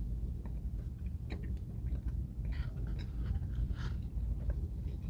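Paper crinkles as a man handles food.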